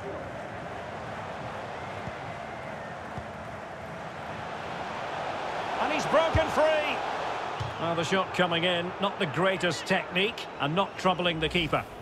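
A large stadium crowd roars and cheers steadily, swelling in excitement.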